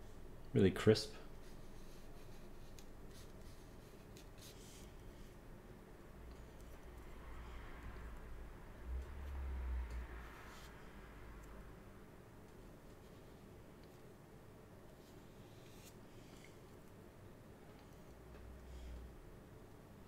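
An ink brush strokes softly across paper.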